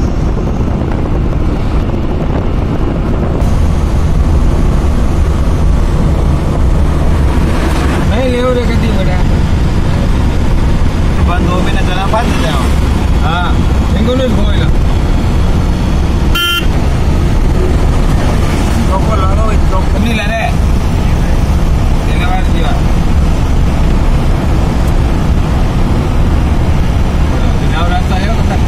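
A vehicle engine hums and tyres roar steadily on a road, heard from inside the vehicle.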